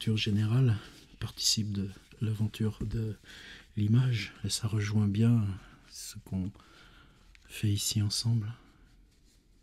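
An elderly man talks animatedly close by.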